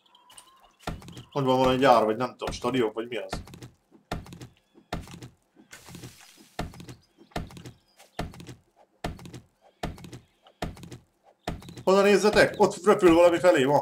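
An axe chops into wood with sharp, repeated knocks.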